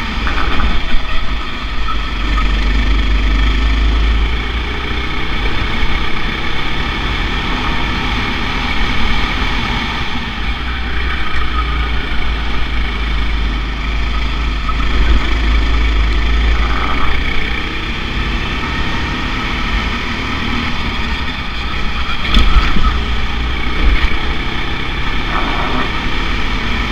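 A kart engine buzzes loudly, rising and falling in pitch as it speeds up and slows down.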